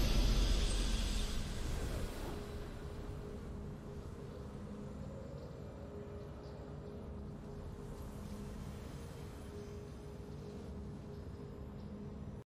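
A triumphant game fanfare rings out and fades into a low, steady musical drone.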